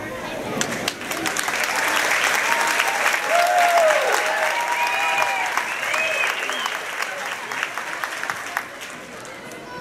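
A large crowd cheers and whoops loudly in an echoing hall.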